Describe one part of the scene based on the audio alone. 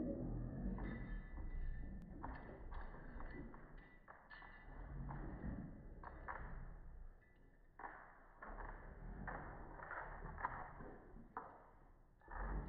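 Two dogs growl and snarl as they play-fight.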